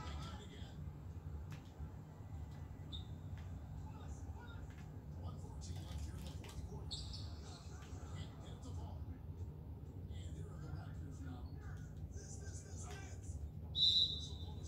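A crowd murmurs, heard through a television speaker.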